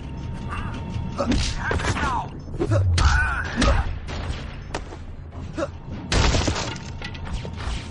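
Punches and shield blows land in a video game fight.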